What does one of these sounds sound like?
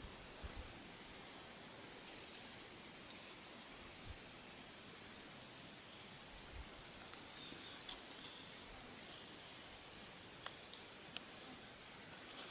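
Leaves rustle softly as a hand handles a plant.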